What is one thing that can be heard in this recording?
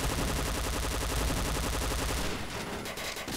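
An automatic rifle fires a rapid burst at close range.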